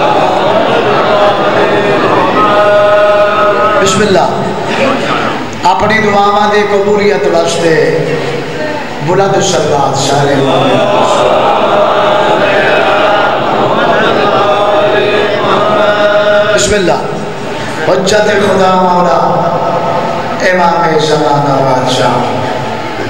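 A man recites in a loud, chanting voice through a microphone and loudspeakers, echoing in a hall.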